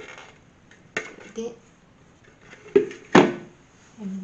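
A plastic lid knocks against a hard surface.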